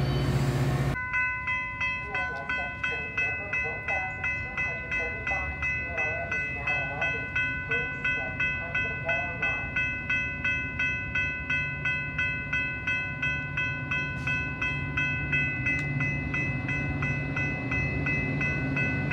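A railway crossing bell rings rapidly and steadily.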